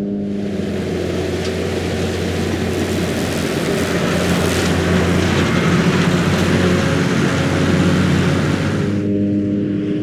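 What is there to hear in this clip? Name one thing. A mower's blades whir and swish through grass close by.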